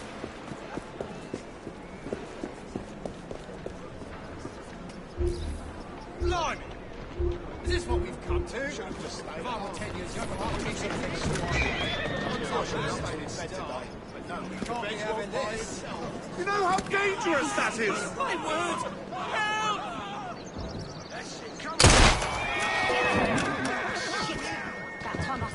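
Footsteps run over cobblestones.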